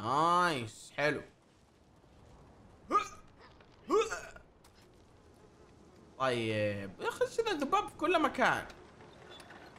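A young man exclaims loudly into a close microphone with animation.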